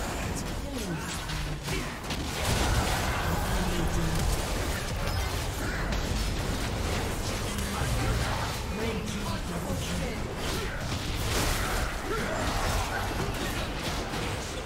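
Magic blasts and weapon hits crackle and boom in a busy video game battle.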